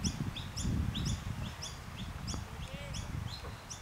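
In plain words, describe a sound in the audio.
A cricket bat strikes a ball in the distance.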